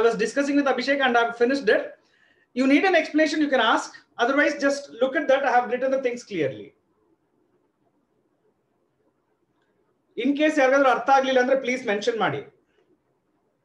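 A man speaks calmly and clearly, close to the microphone, explaining.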